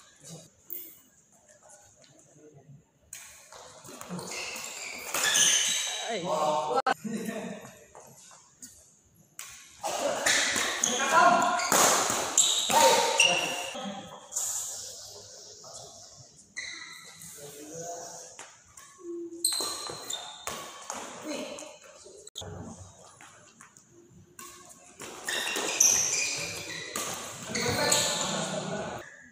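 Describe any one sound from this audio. Badminton rackets strike a shuttlecock in an echoing hall.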